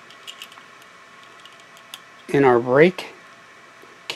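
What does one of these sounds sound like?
A bicycle brake lever clicks softly as a hand works it.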